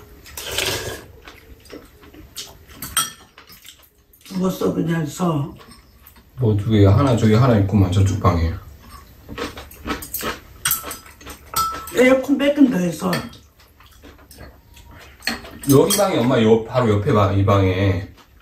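Spoons and chopsticks clink against bowls.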